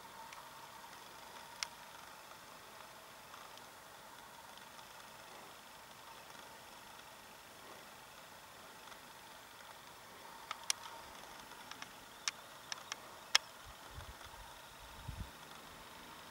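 A small engine idles faintly in the distance.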